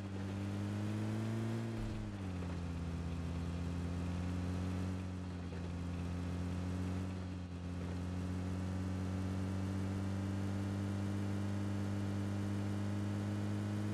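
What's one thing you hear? A vehicle engine drones steadily, dipping in pitch as it shifts.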